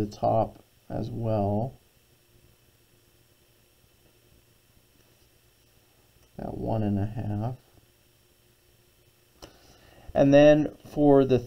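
A pencil scratches lightly along paper.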